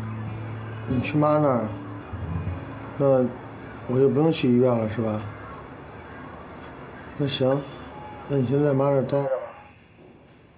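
A man speaks calmly on a phone.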